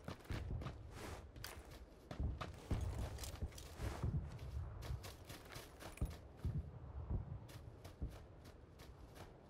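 Quick footsteps rustle through tall grass at a run.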